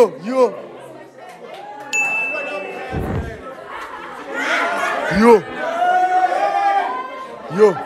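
Young people laugh and cheer loudly.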